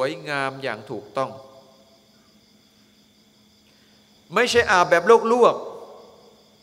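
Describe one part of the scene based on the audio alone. A middle-aged man speaks with emphasis into a microphone, heard through a loudspeaker in an echoing hall.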